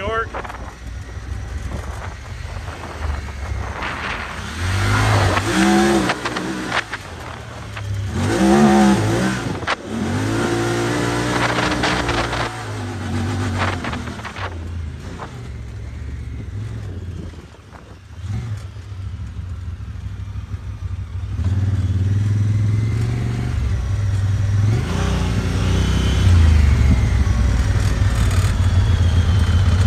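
An off-road vehicle's engine roars and revs up and down close by.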